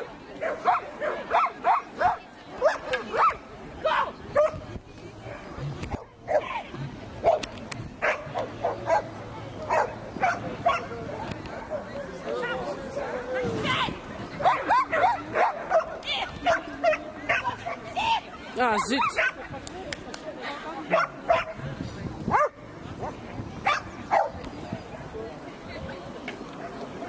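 A young woman calls out excitedly to a dog outdoors.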